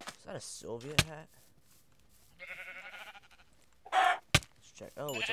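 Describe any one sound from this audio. A sword strikes a chicken with sharp hits.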